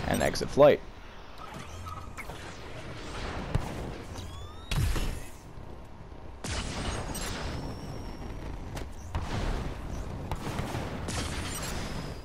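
Jet thrusters roar and hiss in bursts.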